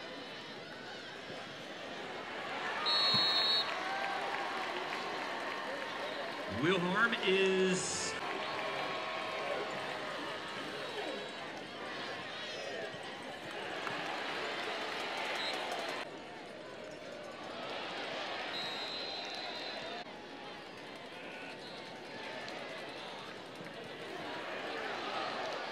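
A large crowd cheers and murmurs in a big open stadium.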